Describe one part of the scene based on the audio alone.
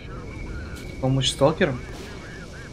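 A man speaks briefly and loudly into a microphone.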